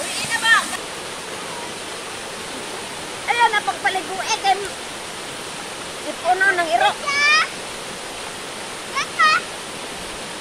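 An elderly woman speaks close by in short bursts.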